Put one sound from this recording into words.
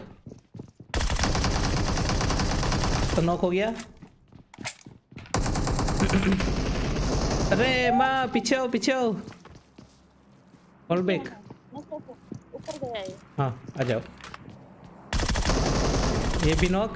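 Rapid gunshots ring out close by.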